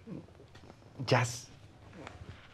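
A man laughs softly close by.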